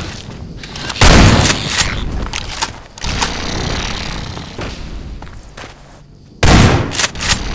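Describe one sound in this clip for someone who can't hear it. A rifle fires loud shots in short bursts.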